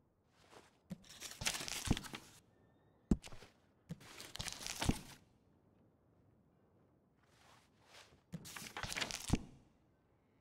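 Pages of a paper catalogue rustle as they are turned.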